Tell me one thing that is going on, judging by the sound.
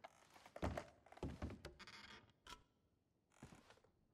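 Small objects rattle and clatter as a cupboard is rummaged through.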